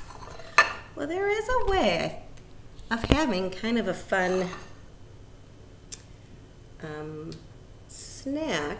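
A middle-aged woman talks calmly close to a microphone.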